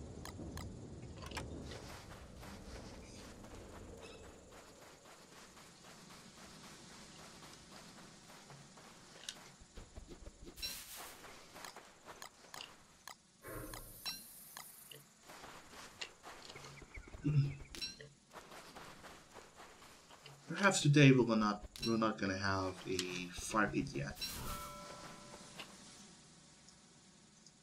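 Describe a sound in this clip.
Footsteps patter softly on sand.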